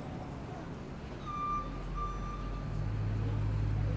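A city bus rumbles nearby.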